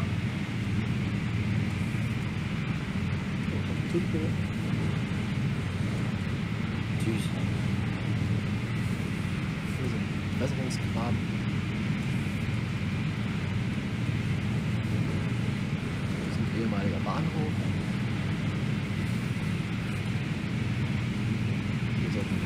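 A train hums and rumbles steadily along the rails.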